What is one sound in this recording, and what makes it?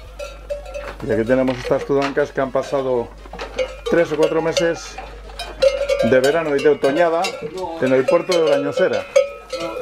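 Cows moo loudly and repeatedly close by.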